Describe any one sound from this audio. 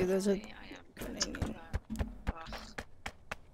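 A woman talks casually into a microphone.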